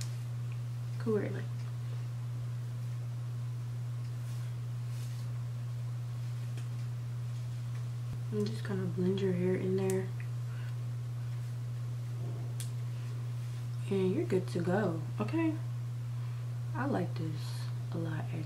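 A girl talks calmly and close by, in short bursts.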